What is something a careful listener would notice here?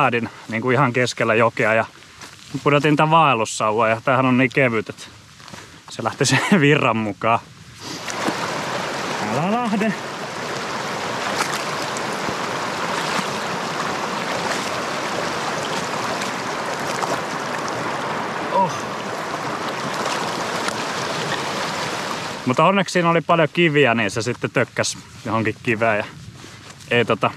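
A young man talks calmly and close by, outdoors.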